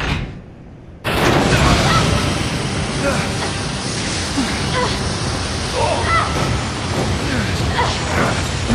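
A loud roaring rush fills the air.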